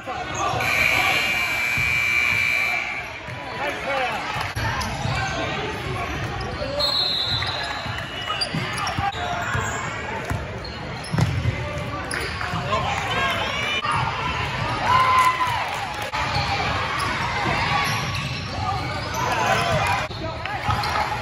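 A crowd of spectators chatters and cheers in an echoing hall.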